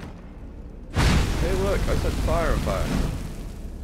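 A burst of fire whooshes and roars.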